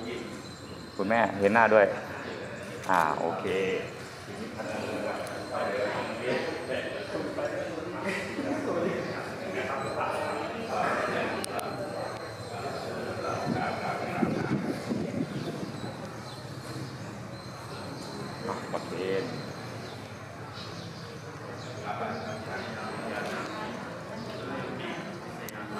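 Men and women talk among themselves in a hall.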